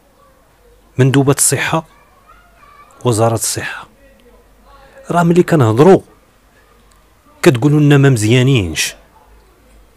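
A man speaks into a microphone close by, in short bursts with pauses.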